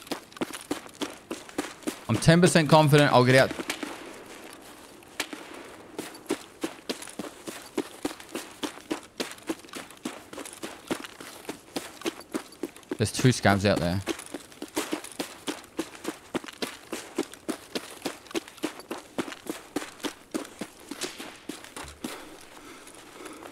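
Footsteps crunch quickly and steadily on snow.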